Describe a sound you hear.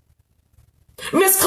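A woman speaks loudly and suddenly close by.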